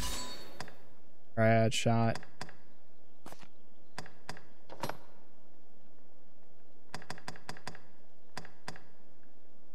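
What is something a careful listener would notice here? Short menu clicks tick as a selection moves.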